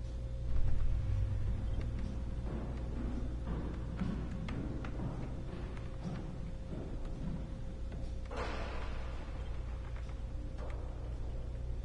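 A soft interface click sounds as a menu selection changes.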